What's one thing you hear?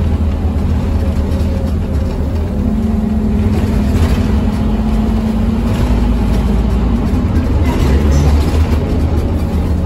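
Tyres hiss on a wet road beneath a city bus.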